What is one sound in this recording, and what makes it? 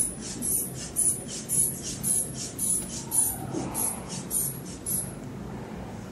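A hand pump squeezes air in quick, regular puffs.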